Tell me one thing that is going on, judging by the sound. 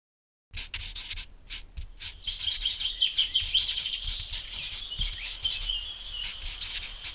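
A marker squeaks and scratches across paper in quick strokes.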